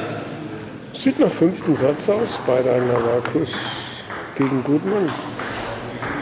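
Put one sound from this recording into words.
A middle-aged man talks close by in a lively way.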